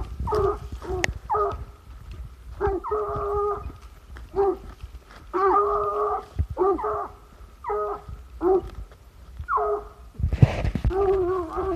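A dog barks and yelps excitedly, close by.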